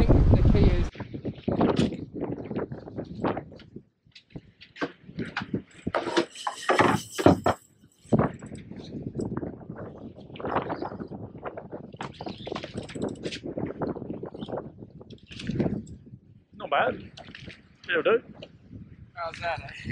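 A man speaks excitedly close by, outdoors in wind.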